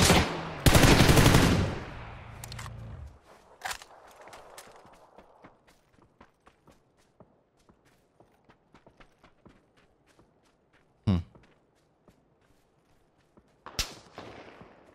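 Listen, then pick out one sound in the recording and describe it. Loud gunshots crack and echo outdoors.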